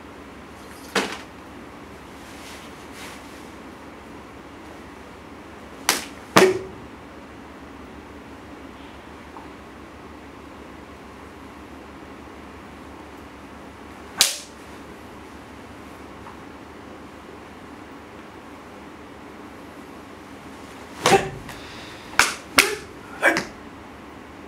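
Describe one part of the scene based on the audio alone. A man slaps his body sharply.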